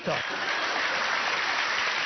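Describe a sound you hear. A young man laughs heartily.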